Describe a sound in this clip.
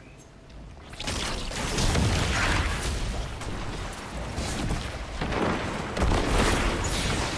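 Energy blasts crackle and boom loudly.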